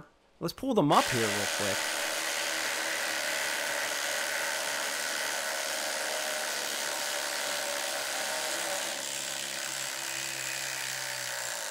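Two power drills whir while driving screws into wood.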